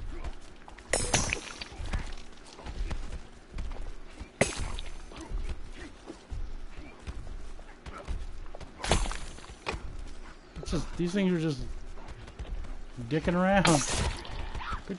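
A weapon swings and strikes with sharp thuds.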